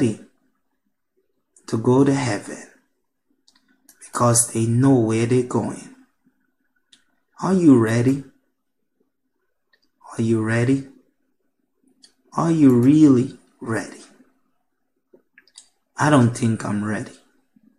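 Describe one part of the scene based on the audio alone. A man speaks calmly in short phrases, close to a microphone, with pauses between them.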